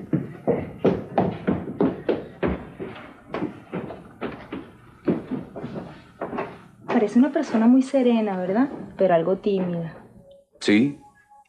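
A woman answers sharply.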